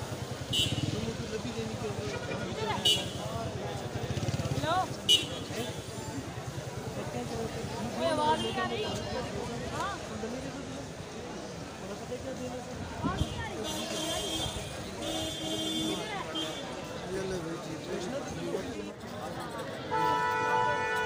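A crowd chatters outdoors in a busy street.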